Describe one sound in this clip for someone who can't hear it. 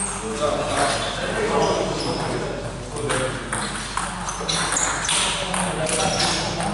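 A table tennis ball clicks back and forth across a table in an echoing hall.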